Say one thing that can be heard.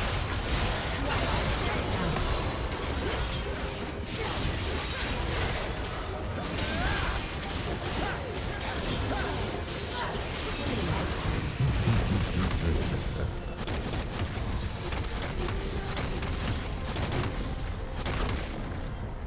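Spell effects and weapon hits crash and whoosh in a busy fight.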